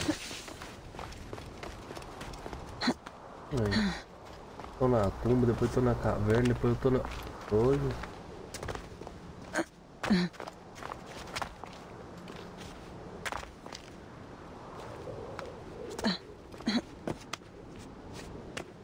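Footsteps crunch quickly over dirt and rock.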